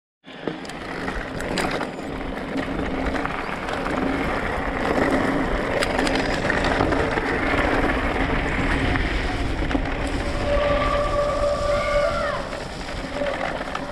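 Bicycle tyres crunch over a gravel path.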